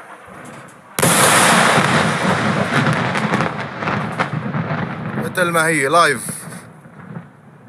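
A huge explosion booms in the distance and rumbles on before fading.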